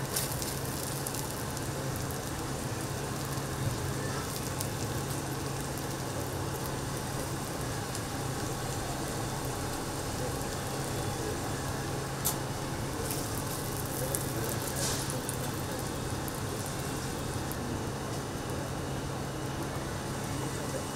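Sausages sizzle on a hot griddle.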